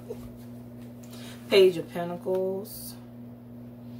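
A card slides and taps onto a table.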